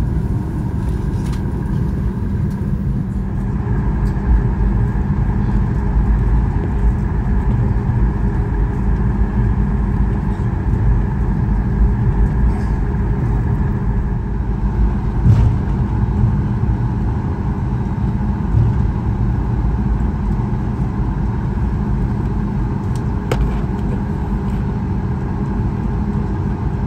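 Jet engines hum steadily inside an aircraft cabin.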